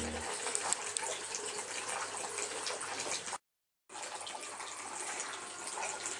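Water trickles and splashes steadily down a small stream.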